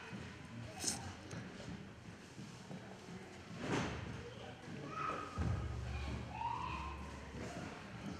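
An elderly man speaks quietly and slowly into a microphone.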